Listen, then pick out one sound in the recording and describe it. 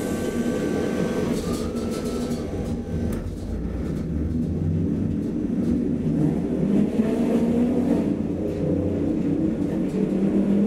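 A tram rumbles and hums steadily as it rolls along.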